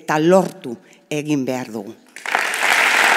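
A woman speaks with animation into a microphone over loudspeakers.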